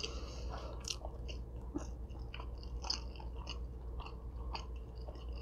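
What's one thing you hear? A young woman chews food with wet smacking sounds close to a microphone.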